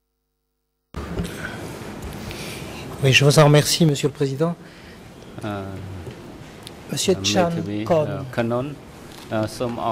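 An elderly man speaks steadily into a microphone.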